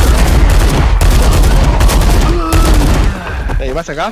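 A gun fires in rapid bursts with loud blasts.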